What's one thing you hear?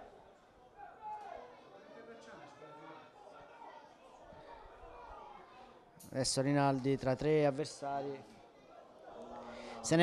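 A small crowd murmurs outdoors in the distance.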